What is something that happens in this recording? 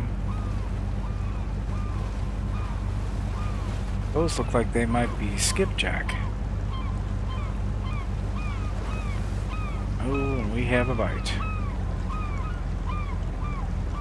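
A motorboat engine drones while cruising.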